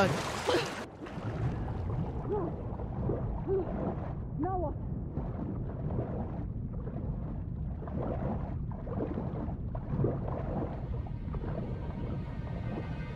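Water swirls and rumbles, muffled as if heard underwater.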